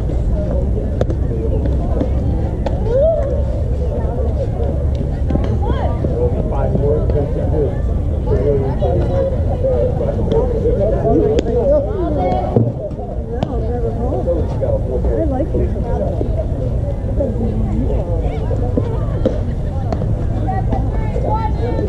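Young girls call and cheer across an open field.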